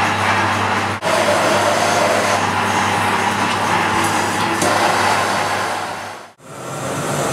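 A gas torch flame roars steadily.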